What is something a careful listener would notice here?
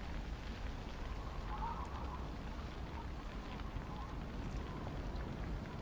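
A large fire roars steadily.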